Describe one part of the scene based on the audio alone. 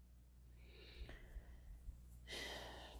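Fingernails tap lightly on cards.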